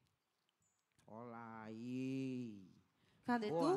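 A woman sings a long held note through a microphone.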